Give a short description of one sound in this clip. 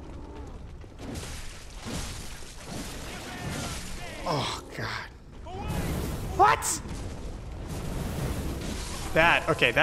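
Weapons clash and whoosh in a game fight.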